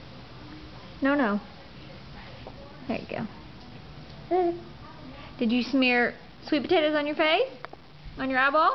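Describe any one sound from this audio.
A baby squeals and babbles close by.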